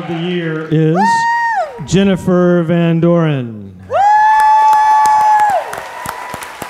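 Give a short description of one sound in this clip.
A woman sings loudly into a microphone on a stage.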